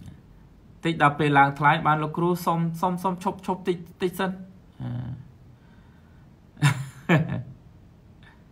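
A man speaks with animation, close to a microphone, as if in an online call.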